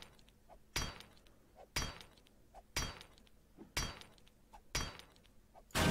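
An axe strikes metal again and again in steady, even blows.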